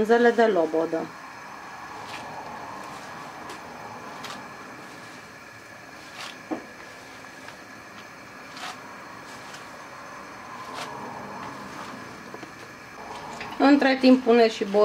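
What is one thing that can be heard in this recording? Water simmers gently in a pot.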